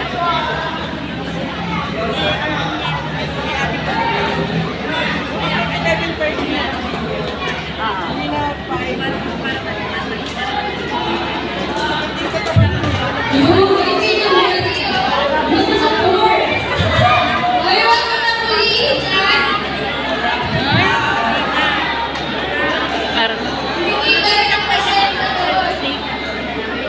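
A large crowd of children and teenagers chatters loudly in a big echoing hall.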